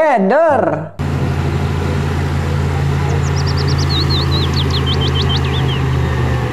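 A heavy diesel engine rumbles steadily nearby.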